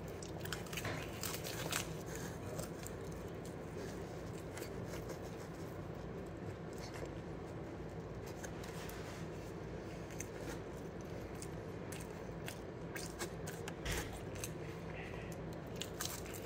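A boy chews and crunches food close by.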